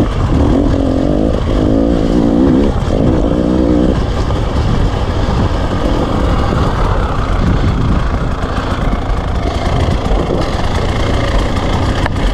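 Tyres crunch over loose rocks and gravel.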